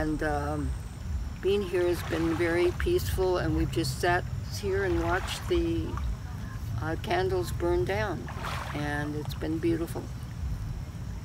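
An elderly woman speaks calmly and close by, outdoors.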